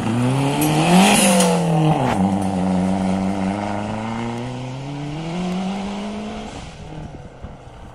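A rally car engine roars and revs hard, then fades into the distance.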